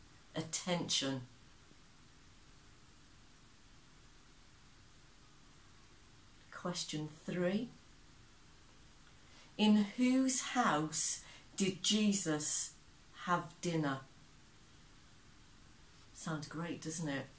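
A woman speaks calmly and clearly close to a microphone, in short phrases with pauses.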